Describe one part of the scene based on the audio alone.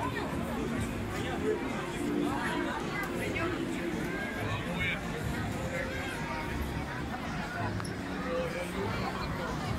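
A large crowd chatters outdoors.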